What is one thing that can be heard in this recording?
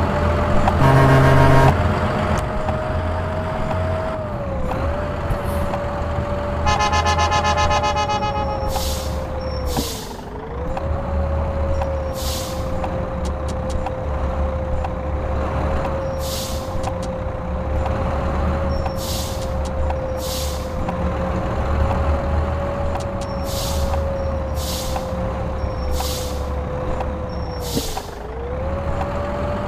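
A bus engine drones steadily, its pitch dipping briefly as it slows.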